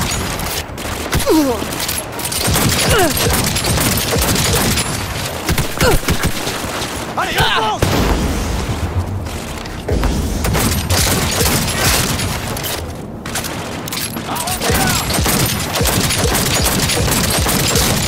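Pistol shots fire in rapid bursts.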